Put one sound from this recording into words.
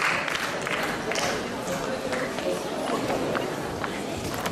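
An audience murmurs and chatters quietly.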